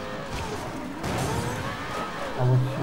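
Two cars collide with a metallic scrape.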